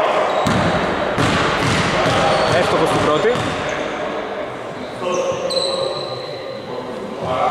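Men talk and call out across the hall.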